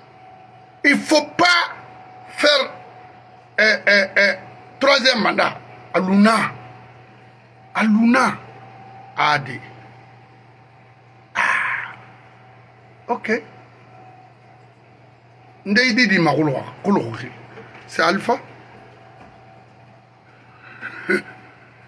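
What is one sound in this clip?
A middle-aged man speaks with animation into a nearby microphone, in short bursts with pauses.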